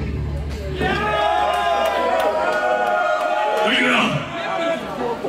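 A rock band plays loudly live in a large echoing hall.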